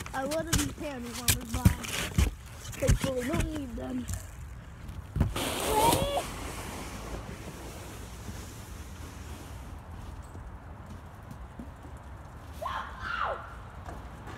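Children talk and shout excitedly nearby outdoors.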